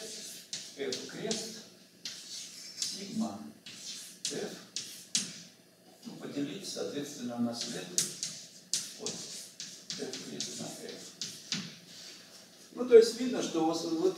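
An older man speaks calmly, as if lecturing, close by.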